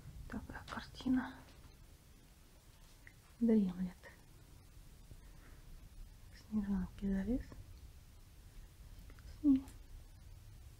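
A kitten meows softly several times.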